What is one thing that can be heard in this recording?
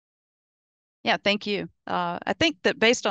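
A woman speaks through a headset microphone on an online call.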